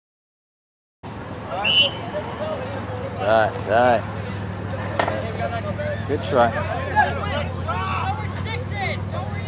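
Young men shout to each other outdoors, some way off.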